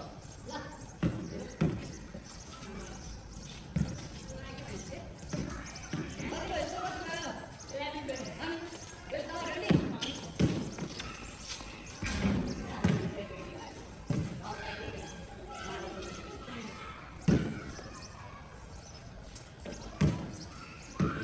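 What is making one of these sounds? A basketball bounces on hard ground.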